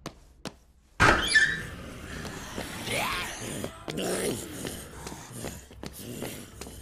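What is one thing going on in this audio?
A crowd of creatures moans and groans all around.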